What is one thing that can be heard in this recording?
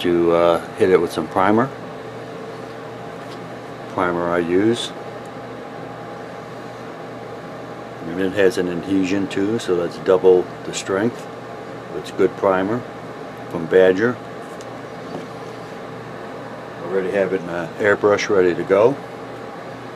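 A man speaks calmly, close to the microphone.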